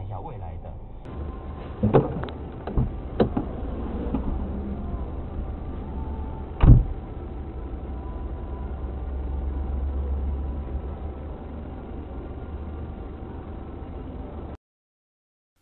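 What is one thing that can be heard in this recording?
A car engine rumbles low while creeping in traffic.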